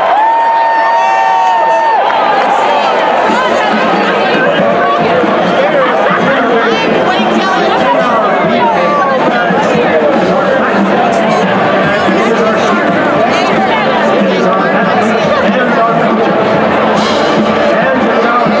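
A huge stadium crowd cheers and shouts throughout.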